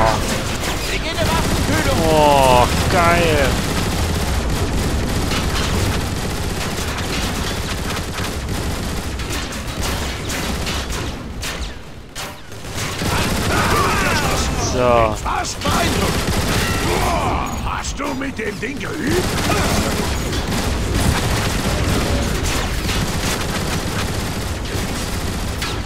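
A heavy energy gun fires in rapid bursts.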